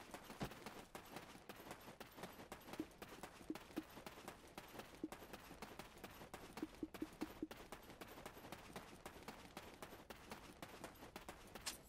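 Quick footsteps patter on dirt.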